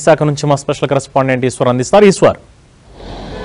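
A man speaks clearly and briskly into a microphone, like a news presenter.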